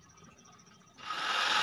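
A power drill whirs briefly.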